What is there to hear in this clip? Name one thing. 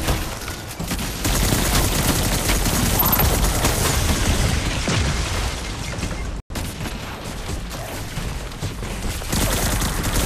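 Gunfire from a rifle rattles in rapid bursts.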